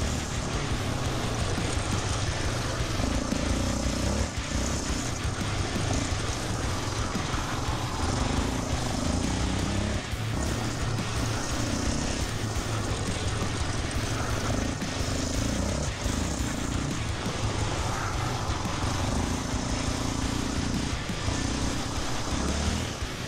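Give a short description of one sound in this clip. An all-terrain vehicle engine roars and revs up and down close by.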